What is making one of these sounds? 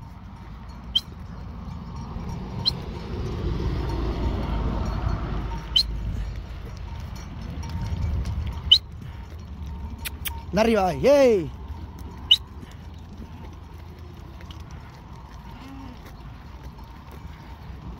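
Many hooves patter on a paved road.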